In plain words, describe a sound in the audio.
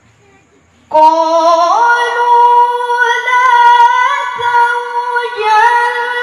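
A young woman chants a long melodic recitation loudly through a microphone.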